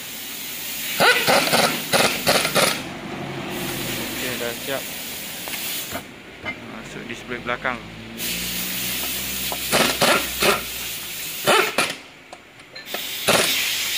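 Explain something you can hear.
An impact wrench rattles in loud, sharp bursts close by.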